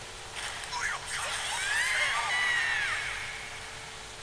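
A magical sword strike whooshes and rings out with a shimmering burst.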